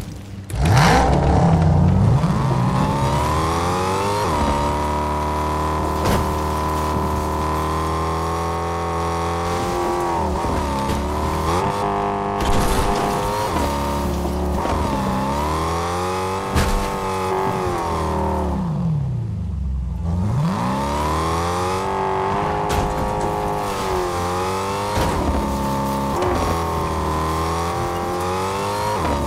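A car engine revs up and down as a car speeds over rough ground.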